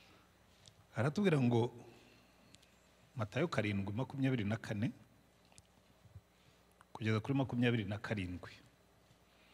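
A man speaks slowly and softly into a microphone, with long pauses.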